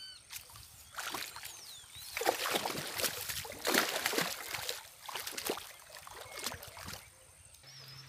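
A fish flaps and splashes in a bucket of water.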